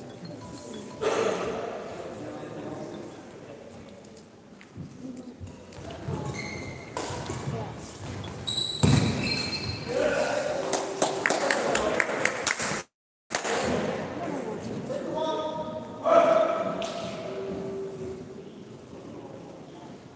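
Young men talk and call out loudly, ringing through a large echoing hall.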